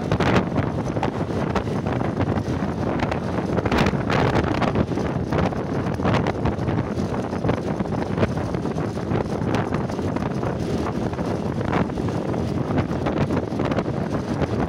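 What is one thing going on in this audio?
Wind rushes past loudly.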